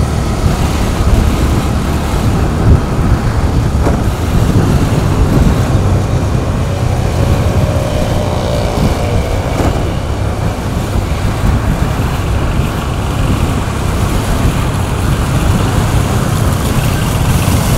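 A motorbike engine hums steadily while riding past queued traffic.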